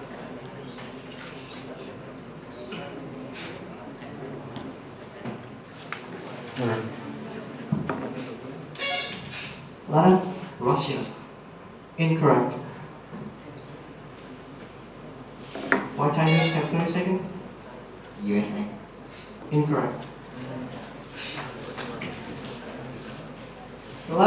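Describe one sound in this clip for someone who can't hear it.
A young man speaks into a microphone over loudspeakers, in a large echoing hall.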